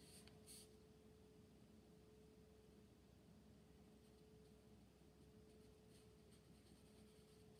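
A brush lightly scratches across paper.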